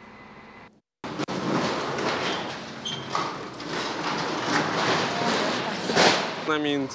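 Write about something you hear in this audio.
Metal and concrete crash and clatter as a building is torn down.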